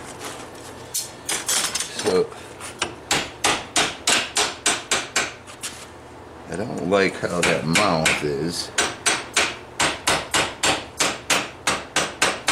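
A hammer rings sharply on metal in a steady series of blows.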